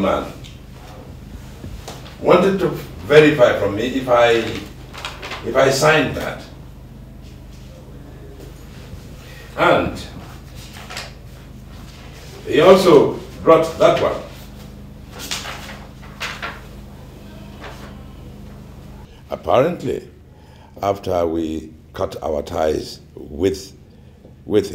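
An older man speaks firmly and close by.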